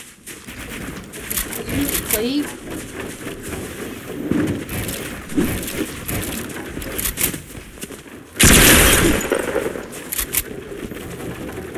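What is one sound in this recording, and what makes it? Wooden building pieces snap into place with quick clacks.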